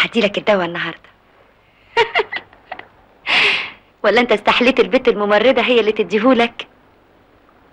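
A young woman speaks warmly and close by.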